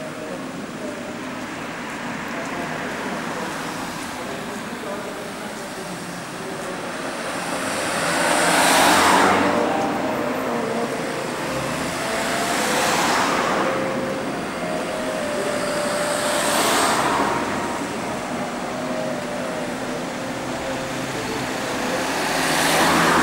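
A fire engine's engine rumbles as it drives around nearby.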